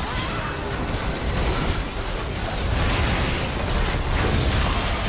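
Game spell effects crackle and whoosh in quick bursts.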